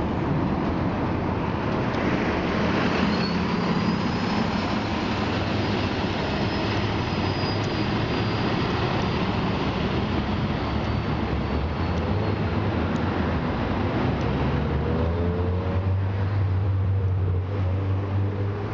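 A bus engine rumbles loudly as the bus pulls away close by.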